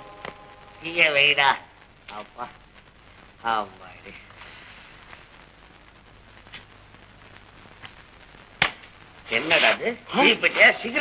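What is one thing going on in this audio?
A man speaks loudly and with animation, heard through an old, hissy film soundtrack.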